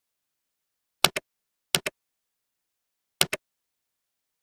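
A mouse button clicks several times.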